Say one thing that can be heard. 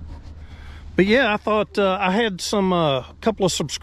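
A man talks close to the microphone, calmly and with animation.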